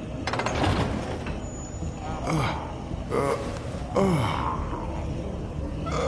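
A man grunts and groans with effort, close by.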